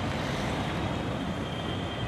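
A motorcycle engine hums as it rides past.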